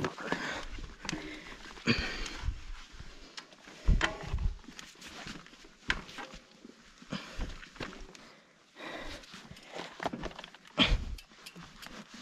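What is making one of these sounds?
A mountain bike rattles and clunks over bumps.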